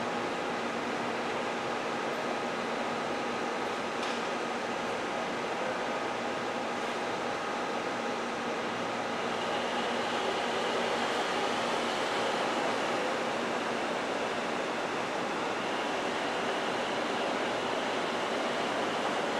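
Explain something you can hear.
An electric train slowly rolls closer with a steady whirring hum.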